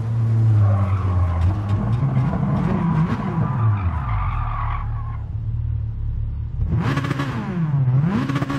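A sports car engine drops in revs as the car brakes and shifts down.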